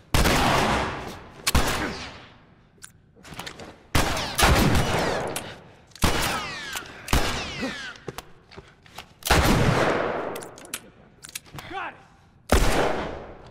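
Gunshots fire loudly and echo through a room.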